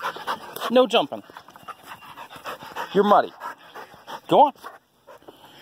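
A dog barks close by.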